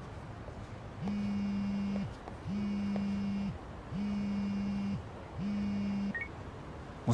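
A phone rings in short repeated bursts.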